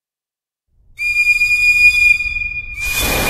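A steam locomotive's whistle blows loudly and steadily.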